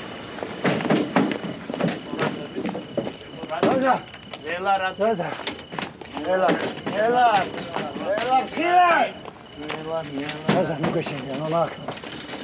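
Several men and women talk urgently over one another.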